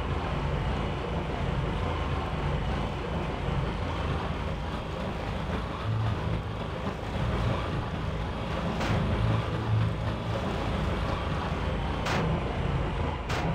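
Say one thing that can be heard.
Water splashes and rushes against a boat's hull.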